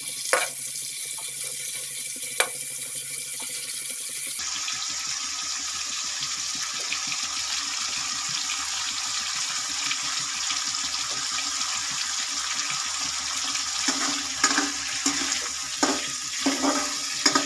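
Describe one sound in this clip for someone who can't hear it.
Oil sizzles steadily in a hot pan.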